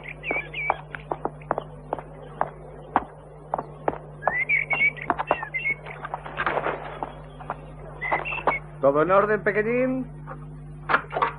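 Footsteps walk along a path.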